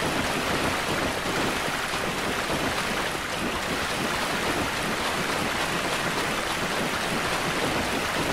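Footsteps splash through shallow water in an echoing tunnel.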